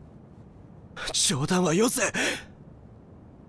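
A young man shouts out in distress.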